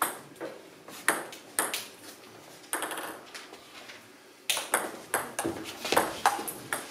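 A ping-pong ball clicks sharply back and forth off paddles and a table in an echoing hall.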